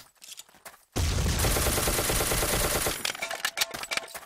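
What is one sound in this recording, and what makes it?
An automatic rifle fires a rapid, loud burst.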